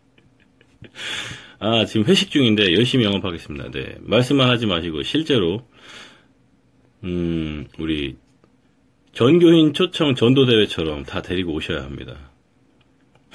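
A young man talks close by in a lively way.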